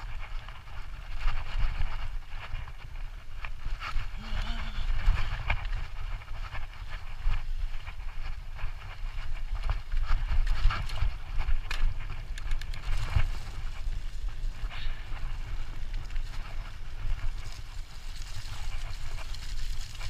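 A bicycle frame and chain rattle and clatter over bumps.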